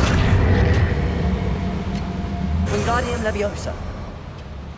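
A magic spell crackles and hums as a crate is levitated.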